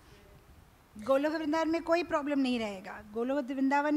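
A woman sings loudly through a microphone.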